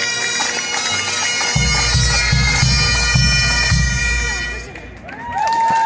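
Bagpipes play a loud, droning tune outdoors.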